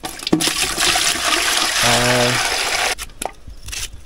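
Water splashes in a metal pot.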